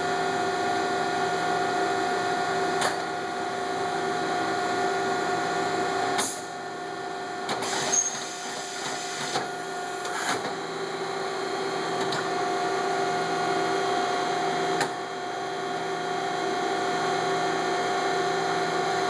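A CNC milling machine runs with a steady whine.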